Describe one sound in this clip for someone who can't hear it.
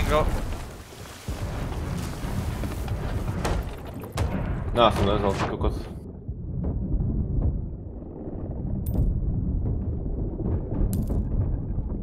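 Water sloshes and bubbles.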